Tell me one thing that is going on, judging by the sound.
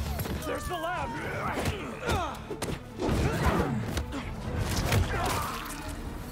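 Punches and kicks land with heavy thuds in a fast scuffle.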